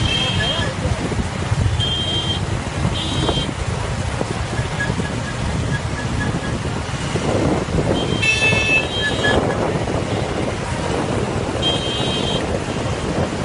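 Vehicle horns honk in short bursts.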